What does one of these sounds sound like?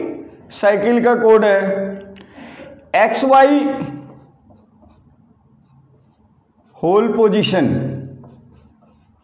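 A man speaks calmly and clearly nearby, explaining in short phrases.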